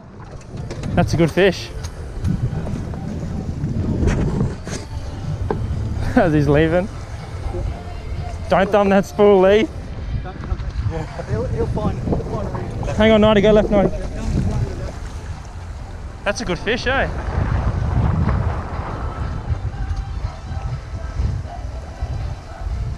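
Wind blows outdoors over open water.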